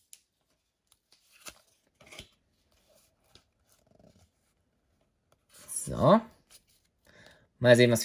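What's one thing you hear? Playing cards rustle as they are shuffled and flicked.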